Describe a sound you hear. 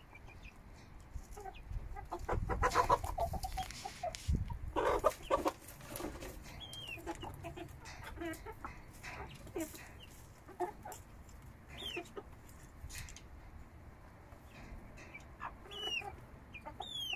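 Chickens peck at food in a dish.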